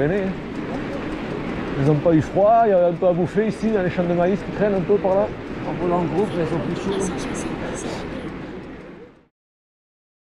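Bicycle tyres roll steadily on a paved road.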